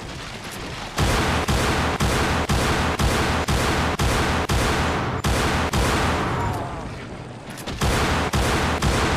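Gunshots fire in rapid, repeated bursts.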